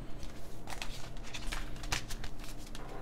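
Plastic keyboard keycaps click and clatter as they are handled.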